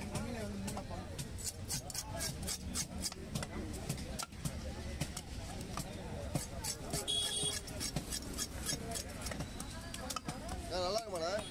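A knife scrapes scales off a fish in quick, rough strokes.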